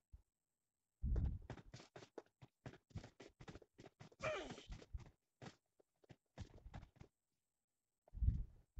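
Footsteps patter on hard ground.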